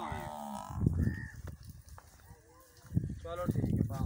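Two water buffalo clash heads with dull thuds.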